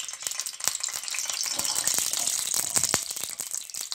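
Garlic pieces drop into hot oil and sizzle loudly.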